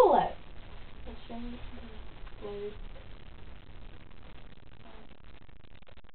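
A teenage girl talks quietly and casually close by.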